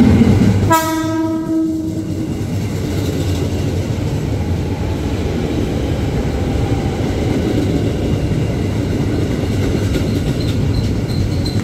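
A train's wheels clatter steadily past nearby.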